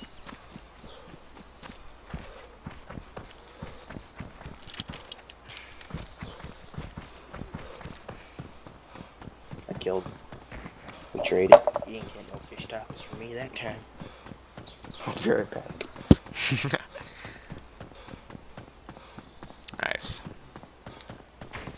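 Footsteps run quickly through grass and along a gravel road.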